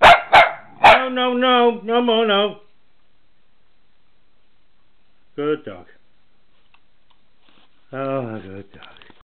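A dog whines and howls in long wavering cries.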